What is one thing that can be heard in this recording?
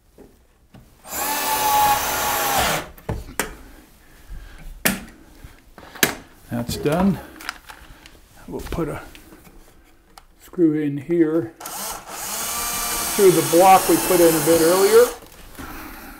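A cordless drill whirs as it drives screws into wood.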